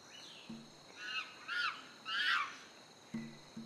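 A chimpanzee shrieks loudly a few times.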